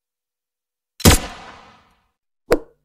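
A loud blast booms from a game.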